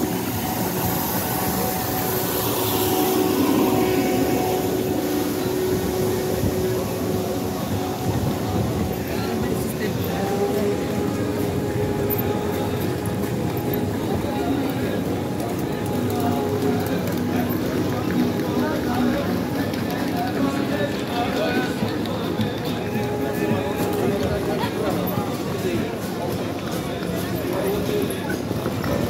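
A busy crowd of people chatters and walks outdoors.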